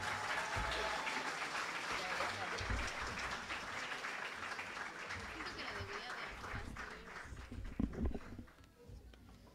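An audience applauds in a large hall, then fades out.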